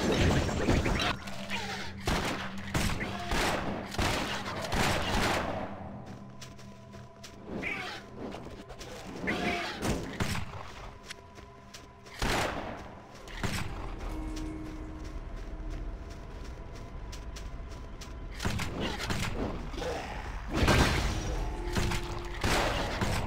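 Magic bolts zap and blast against enemies in a game.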